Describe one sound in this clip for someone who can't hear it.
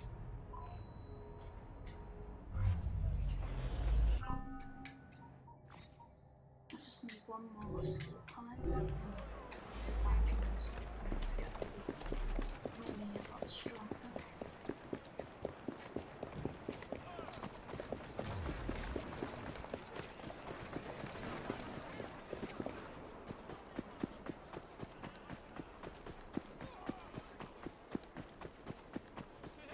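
A young woman talks into a headset microphone.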